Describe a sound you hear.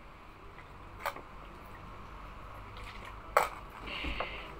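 Small metal earrings clink as they are set down on a hard surface.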